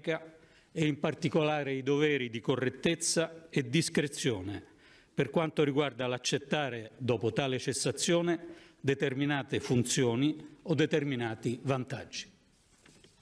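A middle-aged man gives a speech into a microphone in a large echoing hall.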